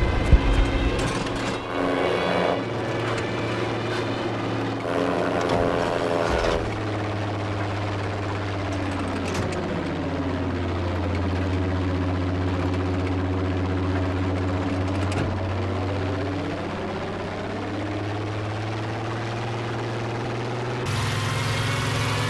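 A propeller plane's engine drones steadily and shifts in pitch.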